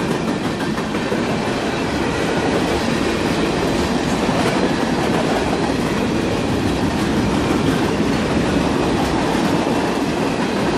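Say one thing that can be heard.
A freight train rumbles past close by, wheels clattering and squealing on the rails.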